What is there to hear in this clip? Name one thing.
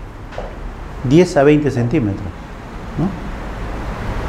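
A middle-aged man speaks briefly into a microphone in an echoing room.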